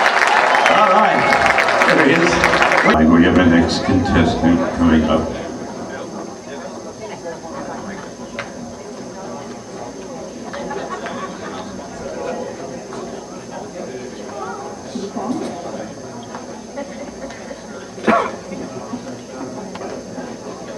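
An elderly man speaks into a microphone over a loudspeaker in a large hall.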